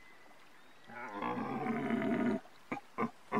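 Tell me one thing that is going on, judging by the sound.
A hunting call is blown with a short, loud, wavering bellow.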